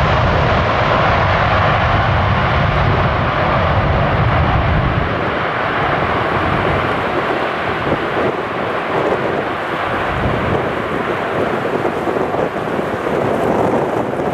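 A jet airliner's engines roar loudly as it rolls down the runway.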